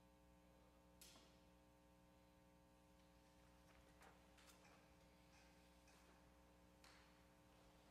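Keys of a woodwind instrument click softly.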